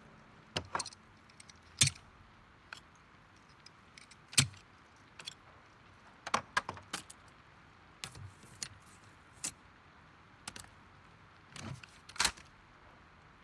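Metal parts click and clatter as a shotgun is put together.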